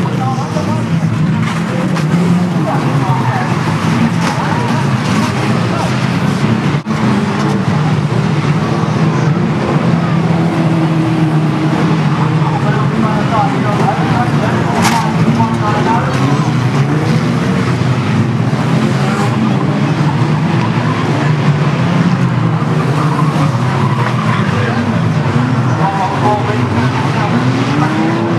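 Car engines roar and rev loudly around a dirt track.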